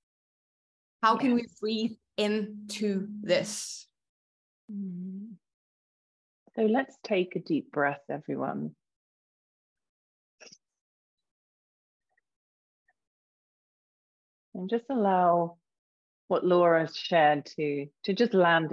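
A young woman speaks calmly over an online call, with pauses.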